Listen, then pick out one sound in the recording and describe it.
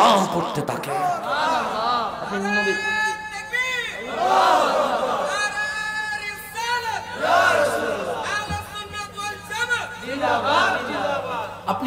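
A man preaches with passion into a microphone, his voice rising into a melodic chant.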